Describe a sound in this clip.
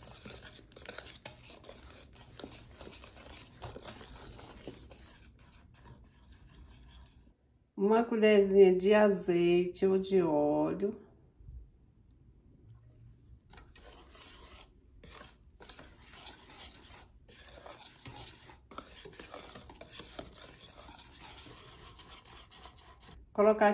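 A wire whisk scrapes and taps against a bowl as batter is beaten.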